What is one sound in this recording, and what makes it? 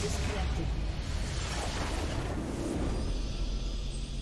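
Magical blasts and impacts burst loudly.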